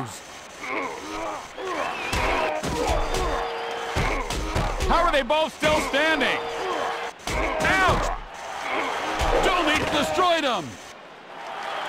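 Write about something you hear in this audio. Heavy punches thud in a fistfight.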